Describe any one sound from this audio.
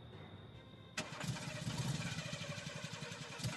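A car engine starts and rumbles steadily.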